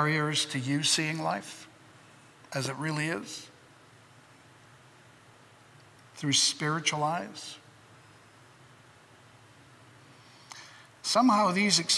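An elderly man speaks slowly and deliberately through a microphone, with long pauses, in a large echoing room.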